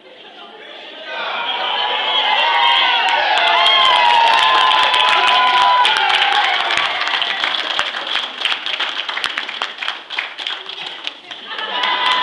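A crowd of children cheers and shouts excitedly.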